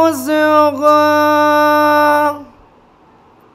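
A young man chants in a long, drawn-out melodic voice through a microphone.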